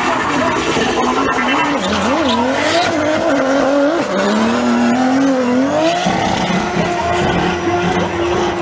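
Tyres screech and squeal on asphalt.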